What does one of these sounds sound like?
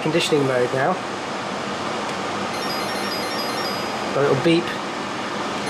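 An appliance beeps as a button is pressed.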